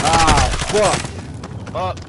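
Explosions boom nearby.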